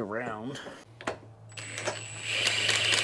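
A power drill whirs.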